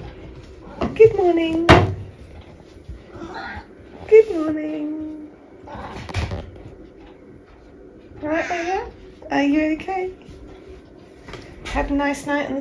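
A cat meows loudly and repeatedly, close by.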